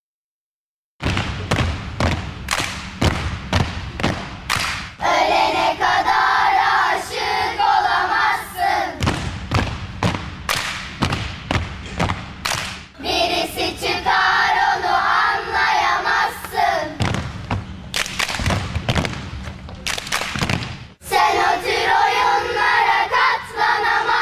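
Loud music with a steady beat and singing plays over loudspeakers.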